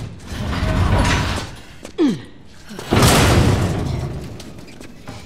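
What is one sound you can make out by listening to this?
A metal locker scrapes and topples over with a crash.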